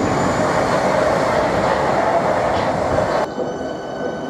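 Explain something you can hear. A train rushes past close by with a loud rumble.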